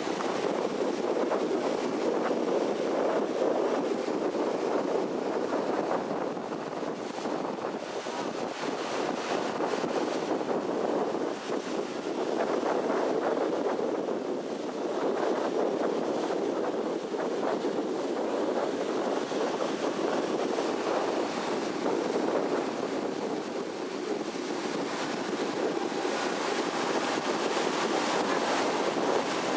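Wind blows across the open water.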